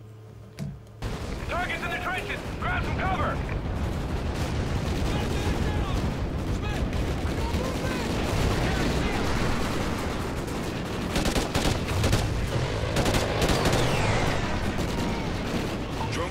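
Battle noise of gunfire and blasts rumbles on.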